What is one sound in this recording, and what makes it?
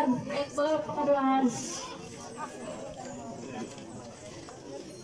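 People murmur quietly in the background outdoors.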